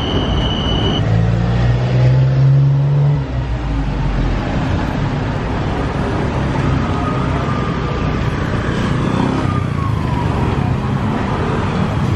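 A car drives past on a wet street.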